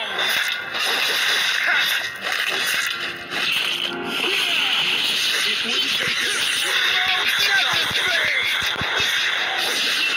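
Magic blasts whoosh and burst.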